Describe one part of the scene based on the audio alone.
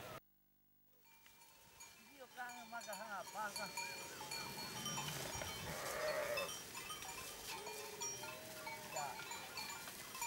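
Sheep bleat in a large flock.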